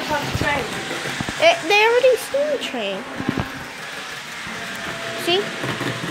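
A child talks excitedly nearby.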